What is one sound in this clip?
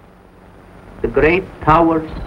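A young man answers in a low, calm voice.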